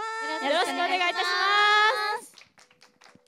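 Young women sing together through microphones.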